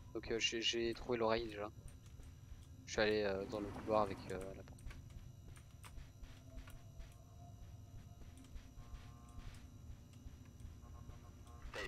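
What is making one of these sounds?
Footsteps tread softly on a carpeted floor.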